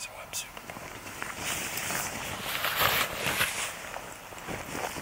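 Fabric rustles and swishes close by.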